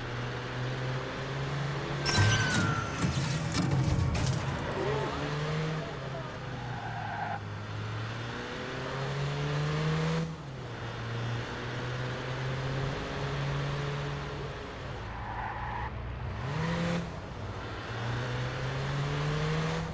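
A car engine hums and revs up and down as it drives.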